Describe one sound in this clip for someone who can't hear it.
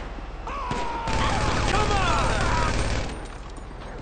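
A gun fires several rapid shots.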